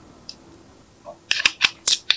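Plastic clicks and taps in short bursts.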